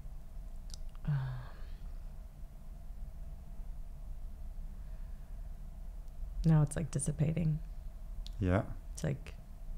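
A woman speaks slowly and emotionally into a close microphone, with long pauses.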